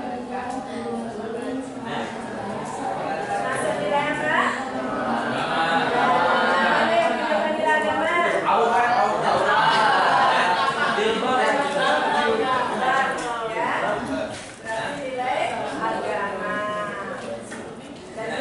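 A woman speaks clearly to a class in a room with a slight echo.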